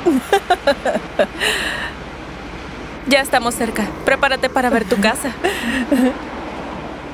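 Young women talk and laugh with animation.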